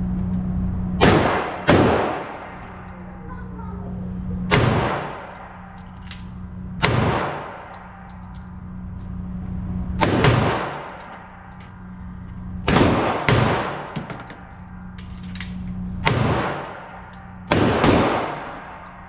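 A handgun fires single shots, which echo in an indoor shooting range.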